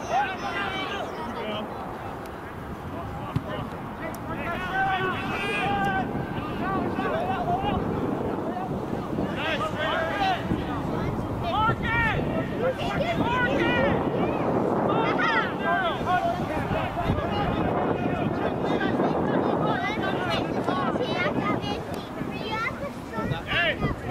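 Spectators shout and cheer outdoors at a distance.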